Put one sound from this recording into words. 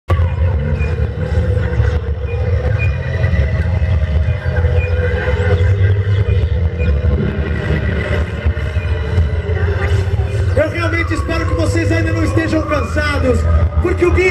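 A live band plays loud music with heavy bass through a large sound system.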